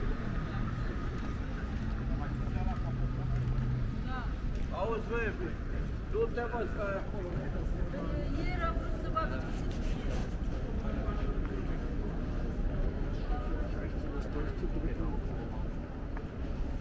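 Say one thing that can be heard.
Footsteps tap on a paved street outdoors.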